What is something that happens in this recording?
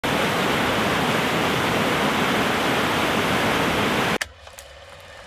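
A waterfall roars loudly and steadily.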